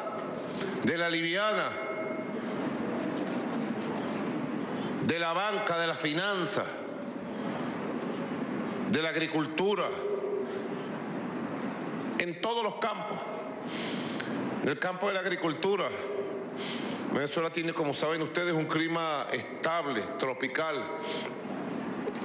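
A man speaks slowly and firmly into a microphone, with pauses.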